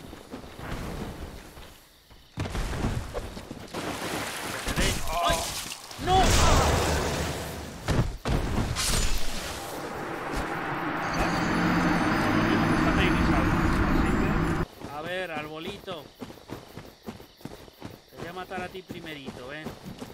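A man talks close to a microphone with animation.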